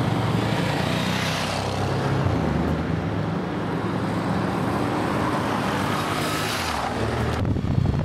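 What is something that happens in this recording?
A car drives past close by.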